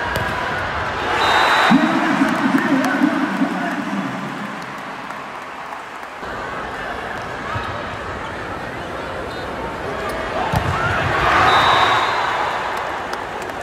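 A large crowd roars loudly after a point.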